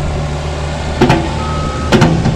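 Dirt thuds into a metal truck bed.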